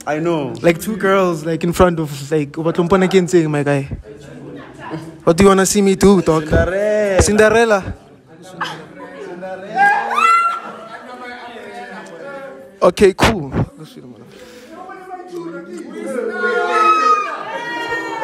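A young man sings into a microphone, heard loudly and close.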